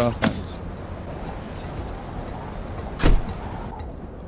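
A wooden door bangs.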